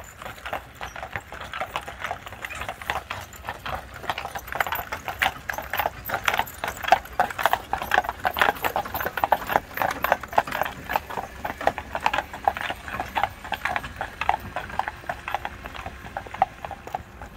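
Horse hooves clop on a wet road, growing louder as they pass close by.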